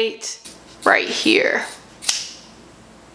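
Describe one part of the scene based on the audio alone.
Scissors snip through hair.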